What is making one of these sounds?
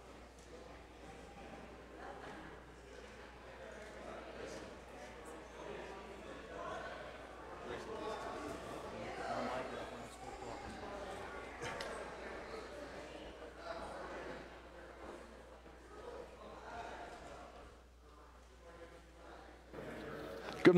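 Many men and women chatter and greet one another in a large echoing hall.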